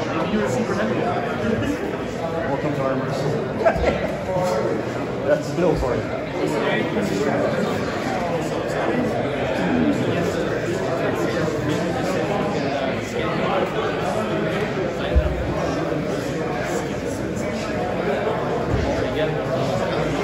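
A man referee talks with animation close by.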